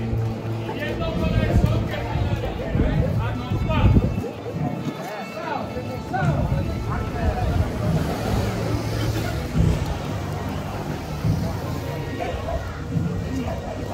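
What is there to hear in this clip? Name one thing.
Footsteps shuffle on a paved street.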